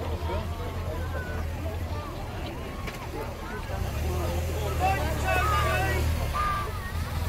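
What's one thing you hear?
A motorcycle engine rumbles past.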